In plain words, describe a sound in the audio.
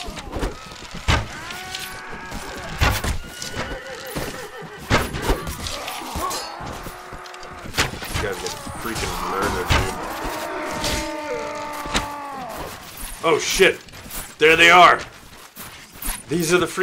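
Swords clash and strike with sharp thuds.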